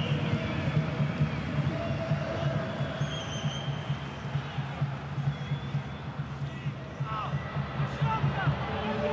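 A large stadium crowd chants and roars steadily.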